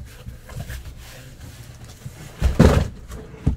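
Hands rustle and scrape against a cardboard box.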